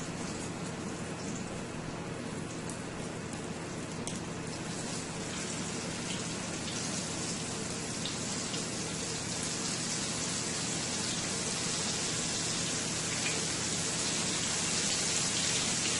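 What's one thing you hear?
Fish sizzles and crackles in hot oil in a pan.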